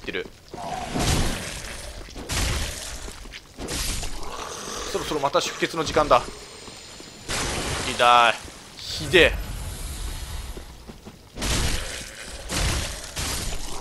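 Swords slash and strike with sharp metallic hits.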